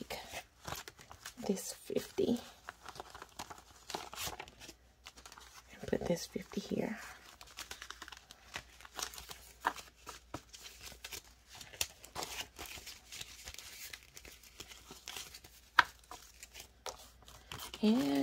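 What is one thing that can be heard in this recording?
Paper banknotes rustle and crinkle as they are handled.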